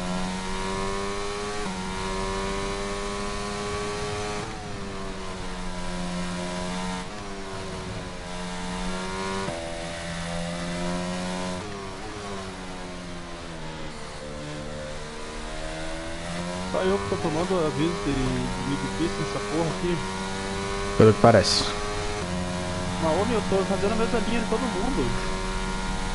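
A racing car engine screams and revs up and down through gear changes.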